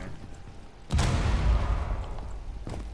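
An assault rifle fires a burst of shots.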